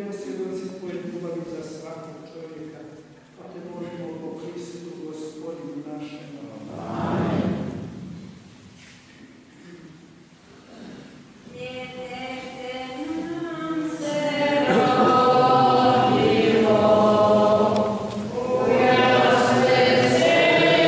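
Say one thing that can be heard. A congregation of elderly men and women sings together in a large echoing hall.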